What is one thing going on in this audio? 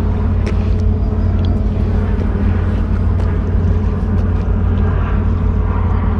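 A fish flops and slaps against concrete.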